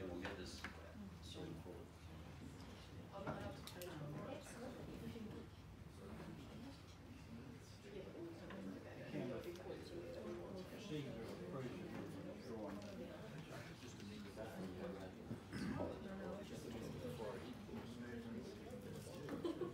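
Several adults talk quietly in a room, their voices overlapping.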